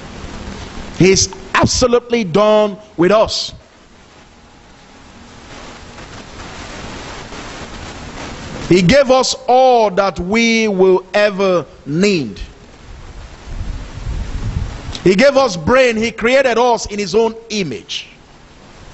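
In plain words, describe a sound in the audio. A man speaks with animation into a microphone, heard through loudspeakers in an echoing room.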